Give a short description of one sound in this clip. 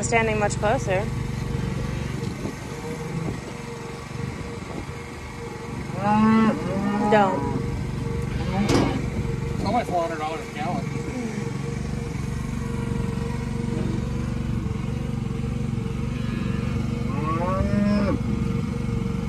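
A cow moos loudly close by.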